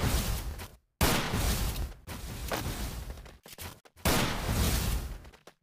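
Ice walls burst up with loud whooshing crashes.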